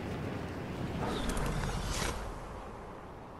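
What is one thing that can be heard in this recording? A glider snaps open with a whoosh.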